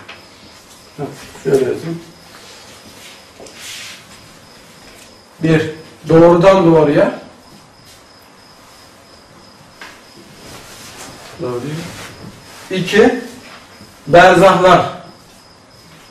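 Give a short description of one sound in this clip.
A man speaks in short, calm phrases, like a lecturer, with a slight room echo.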